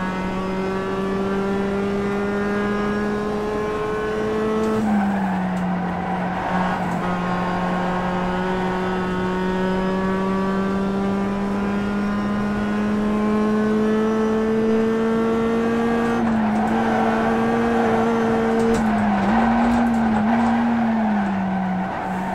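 A racing car engine revs and drones steadily through loudspeakers, rising and dropping with each gear change.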